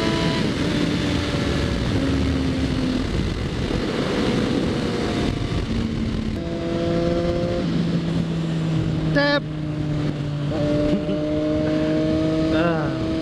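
A motorcycle engine hums steadily and shifts pitch as the rider changes gears.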